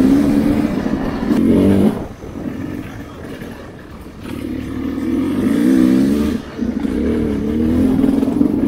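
A dirt bike engine revs up and down close by.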